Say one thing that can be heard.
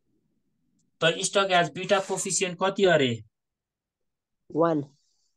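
A man speaks calmly close to the microphone, explaining.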